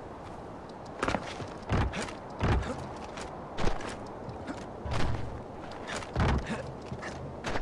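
Metal rungs clank as someone climbs a ladder.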